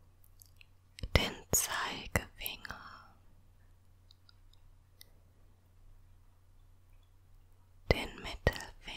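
Long fingernails click and scratch close to a microphone.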